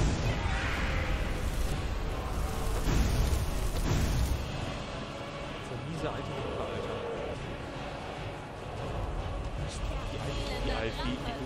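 Lightning spells crackle and zap.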